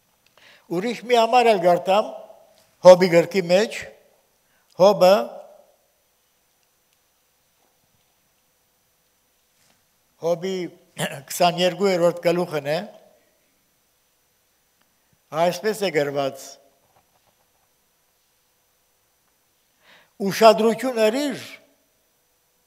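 An elderly man speaks slowly and calmly through a microphone, with long pauses.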